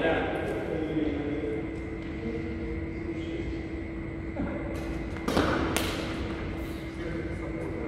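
Badminton rackets strike a shuttlecock with sharp pops.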